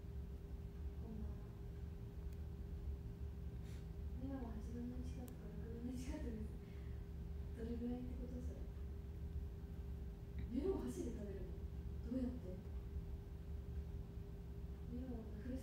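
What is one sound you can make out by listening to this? A young woman speaks softly and calmly close by.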